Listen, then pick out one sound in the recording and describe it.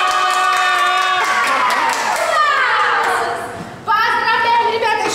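Young girls squeal and shout excitedly close by.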